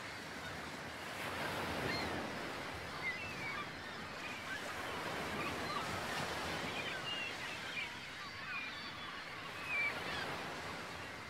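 Small waves lap gently against a shore outdoors.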